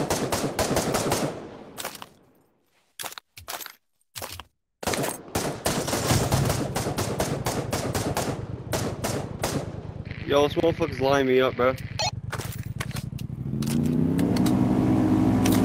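A gun clicks and clatters as it is handled and loaded.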